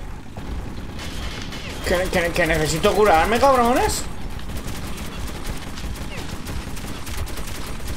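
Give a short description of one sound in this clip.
Gunshots ring out in quick bursts.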